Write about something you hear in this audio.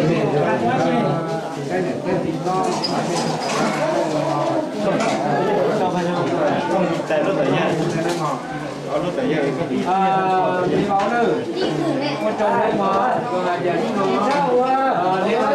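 A crowd of men and women chatters loudly and all at once nearby.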